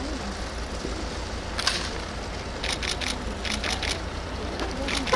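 A crowd murmurs nearby outdoors.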